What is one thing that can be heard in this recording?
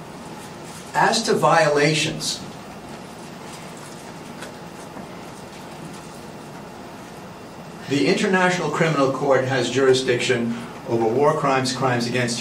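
A man lectures calmly, heard through a microphone.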